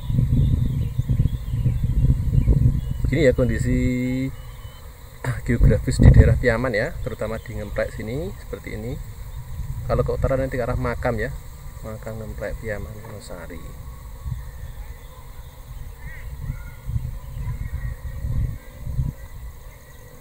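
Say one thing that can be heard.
Wind blows across open fields outdoors, rumbling against the microphone.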